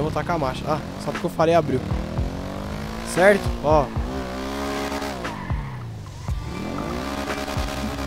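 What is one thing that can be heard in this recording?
A motorcycle engine hums and revs up and down as it rides.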